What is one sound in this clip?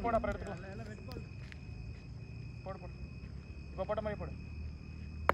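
Young men call out to each other at a distance outdoors.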